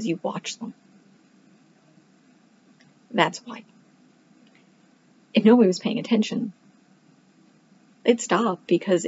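A woman speaks calmly in short phrases, close to a microphone, as if on an online call.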